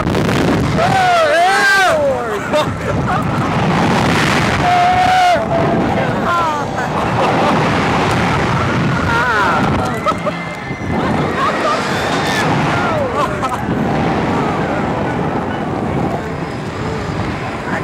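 A young woman laughs and shrieks close by.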